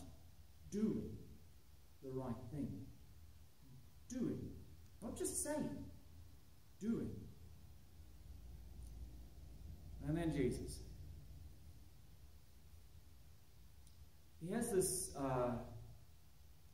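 A man speaks calmly into a microphone, with pauses between phrases, in a slightly echoing room.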